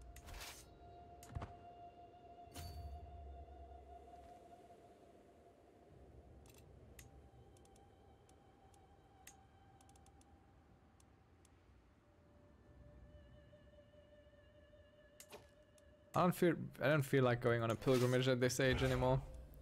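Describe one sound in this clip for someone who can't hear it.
Game interface clicks and chimes sound now and then.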